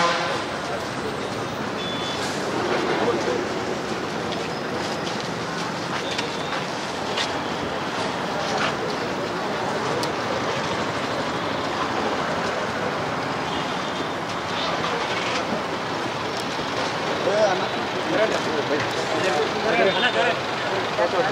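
A crowd of men talks and shouts loudly outdoors.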